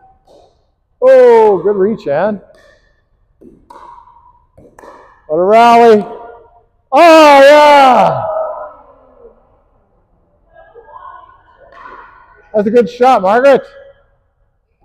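A woman calls out loudly in a large echoing hall.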